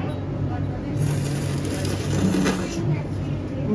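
A young woman slurps noodles loudly.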